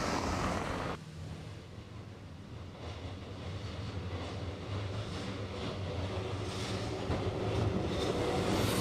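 A tram rumbles along its rails as it approaches.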